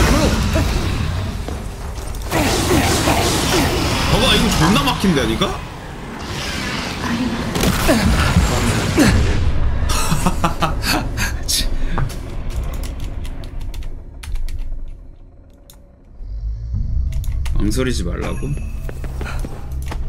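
A magic weapon fires with crackling zaps.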